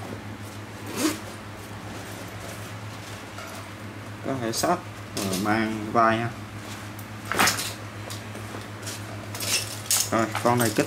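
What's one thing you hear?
Metal clips on a bag clink.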